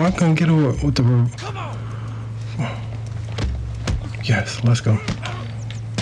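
A man grunts and groans loudly while fighting.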